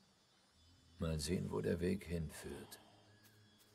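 A middle-aged man speaks calmly in a low, gravelly voice.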